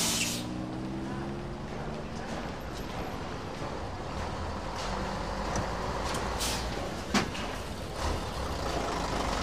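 Footsteps clatter on stairs nearby.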